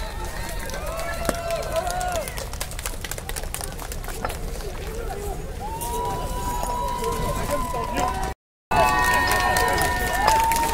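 A crowd of men and women talk and call out outdoors.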